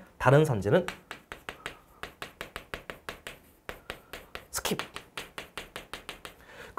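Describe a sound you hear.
Chalk taps and scratches on a board in quick strokes.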